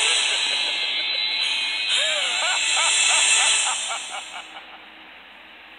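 Loud, bright game music plays with a rising fanfare, then fades out.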